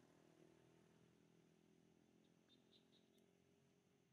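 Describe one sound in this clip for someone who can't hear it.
A baby monkey rustles through dry leaves on the ground.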